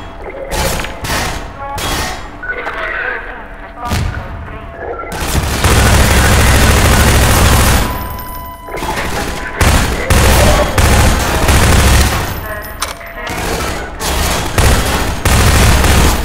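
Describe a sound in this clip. Rapid gunfire rattles loudly, echoing in a large hall.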